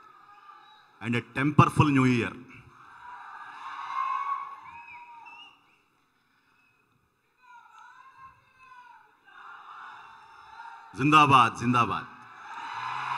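A man shouts loudly into a microphone over a loudspeaker in a large hall.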